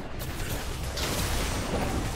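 A game turret explodes and crumbles.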